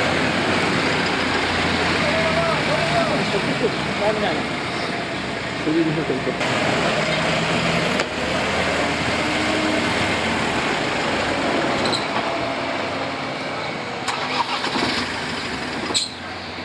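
Heavy vehicle engines rumble as they drive slowly past.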